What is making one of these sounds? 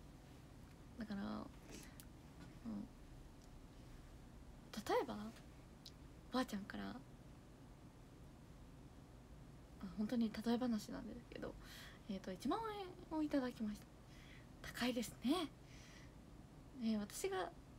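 A young woman talks brightly and casually, close to a microphone, with pauses between phrases.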